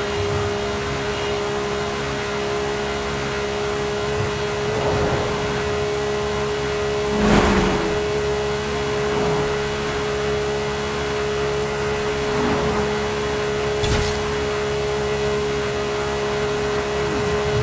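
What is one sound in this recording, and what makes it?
A car engine drones steadily at high speed.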